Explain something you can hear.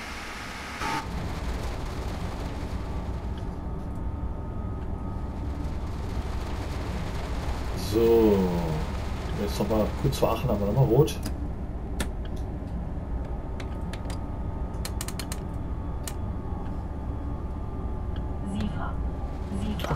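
A train cab hums and rumbles deeply as the train runs along the track.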